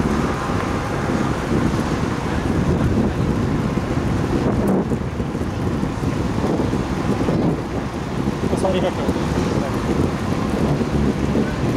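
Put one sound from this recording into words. Bicycle tyres hum on smooth asphalt.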